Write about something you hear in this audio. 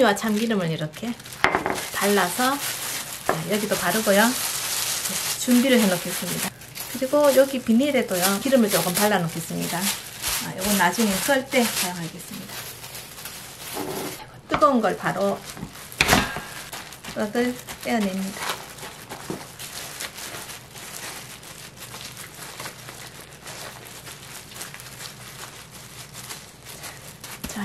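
Plastic wrap crinkles and rustles as hands smooth and handle it.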